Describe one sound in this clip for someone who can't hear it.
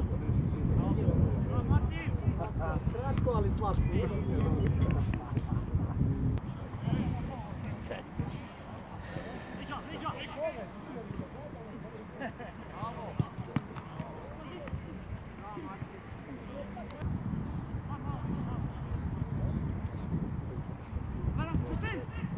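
Young men shout to each other across an outdoor football field.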